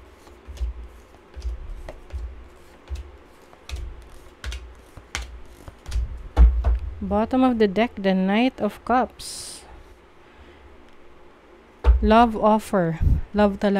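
Cards shuffle and riffle in someone's hands.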